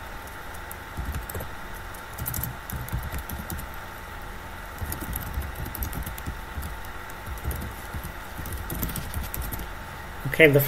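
Keys clatter on a keyboard in quick bursts.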